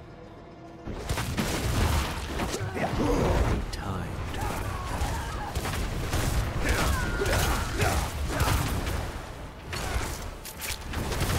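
Fire spells roar and crackle loudly.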